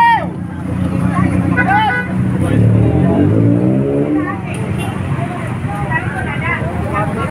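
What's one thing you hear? People talk nearby outdoors.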